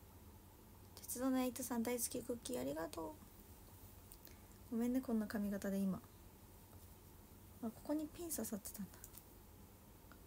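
A young woman speaks close up in short, calm phrases with pauses between them.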